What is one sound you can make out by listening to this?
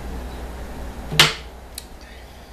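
A woman burps loudly, close to the microphone.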